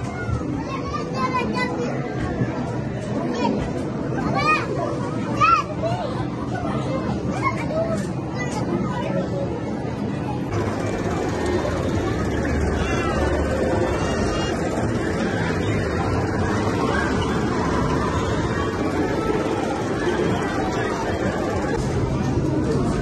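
Arcade game machines play electronic music and beeps in a noisy hall.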